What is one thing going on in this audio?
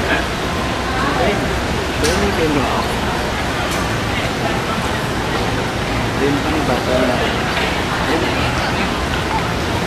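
A crowd of people chatters outdoors in a busy, noisy open space.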